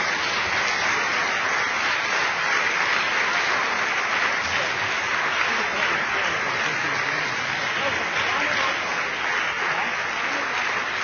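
A large audience applauds steadily.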